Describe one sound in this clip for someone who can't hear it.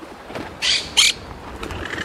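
A parrot squawks in short shrill bursts.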